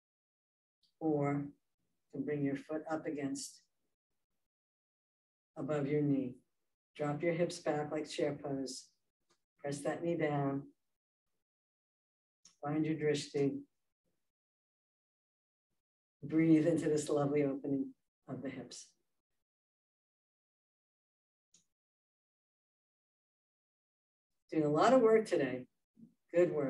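A woman speaks calmly and clearly, as if giving instructions, close to a microphone with pauses between phrases.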